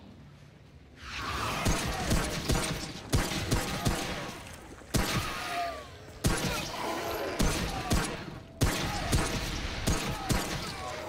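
Gunshots fire in rapid bursts close by.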